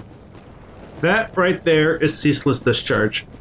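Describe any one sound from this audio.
A man speaks loudly and with animation into a microphone.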